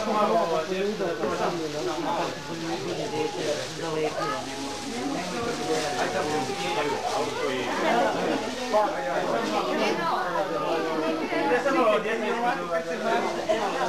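A man talks in a low, friendly voice close by.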